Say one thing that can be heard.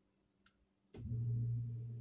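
A heating system starts up and air blows through a floor vent with a low, steady rumble.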